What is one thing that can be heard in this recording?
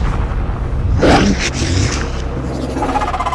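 A large creature growls with a deep, rasping snarl.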